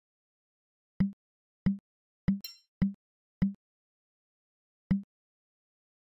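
Interface buttons click sharply several times.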